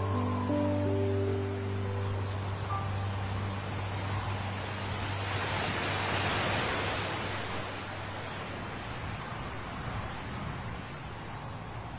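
Surf washes steadily over a rocky shore.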